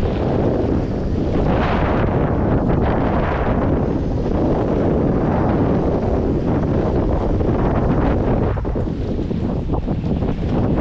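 Choppy water splashes against a small boat's hull.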